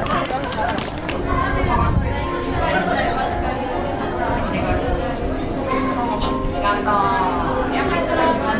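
A crowd of people chatter indoors.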